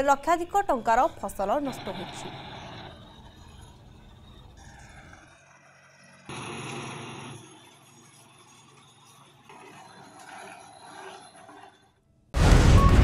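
A tractor engine hums.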